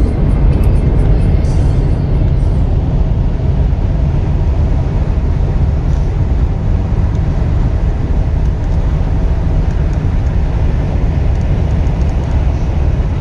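Road noise and wind roar steadily from inside a fast-moving car.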